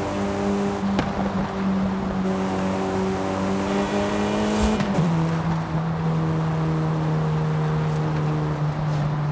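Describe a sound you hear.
Tyres roll fast on gravel.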